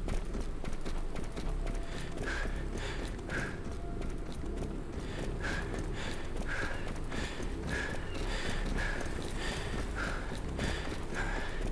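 Footsteps run steadily across stone paving.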